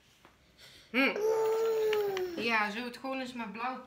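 A woman speaks to a toddler in a high, sing-song voice close by.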